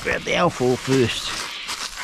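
Foil crinkles in a hand.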